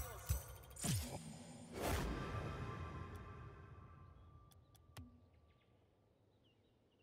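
A bright game reward chime rings out and slowly fades.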